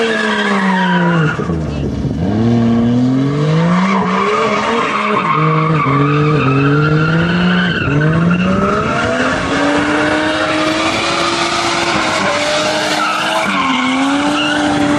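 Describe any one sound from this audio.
A car engine revs hard, rising and falling as the car drifts.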